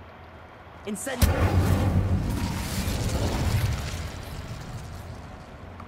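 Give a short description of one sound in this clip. Fire bursts with a roar and crackles.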